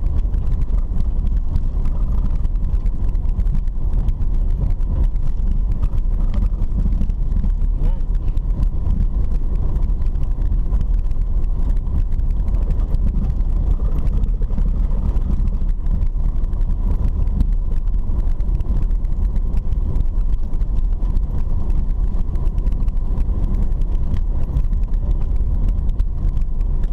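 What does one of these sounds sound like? Tyres rumble and crunch over a dirt road.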